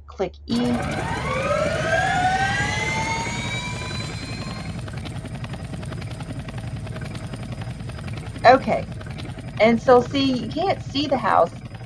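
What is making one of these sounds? A helicopter's rotor whirs as it spins up, rising in pitch, then thrums steadily.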